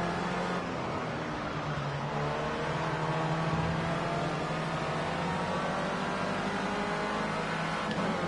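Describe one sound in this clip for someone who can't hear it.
A racing car engine roars steadily at high revs.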